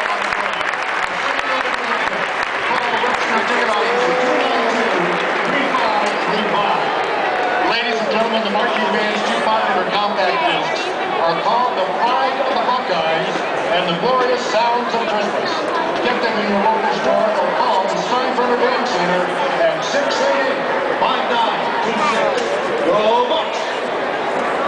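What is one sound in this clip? A large stadium crowd roars and cheers outdoors.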